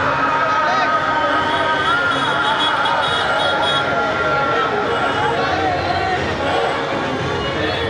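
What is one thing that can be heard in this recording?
A large crowd of men and women chatters and murmurs outdoors.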